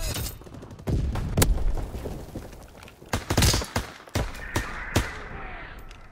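A rifle fires loud, rapid shots.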